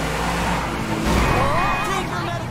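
A car scrapes and bumps against another car.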